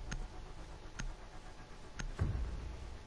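A countdown timer ticks with short beeps, once a second.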